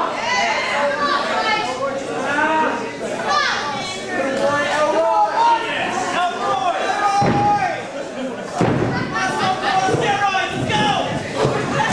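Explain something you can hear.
A crowd of men and women shouts and cheers.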